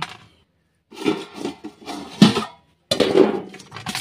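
Metal plates clink and clatter as they are handled.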